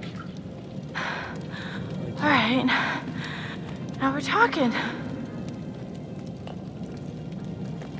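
A fire crackles.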